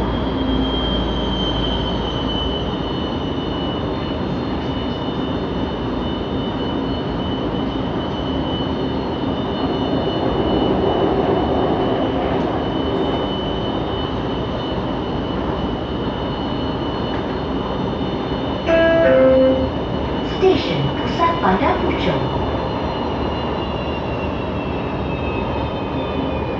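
A train hums and rumbles steadily along the track, with a high electric whine.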